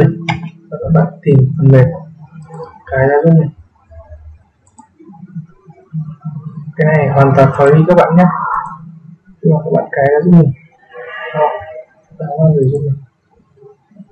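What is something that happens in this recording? A young man talks calmly and closely into a microphone.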